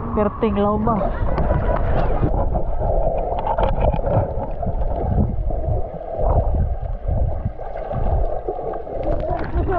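Water sloshes and bubbles underwater, muffled.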